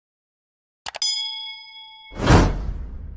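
A bell chimes brightly.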